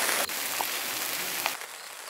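Sauce sizzles and bubbles in a hot pan.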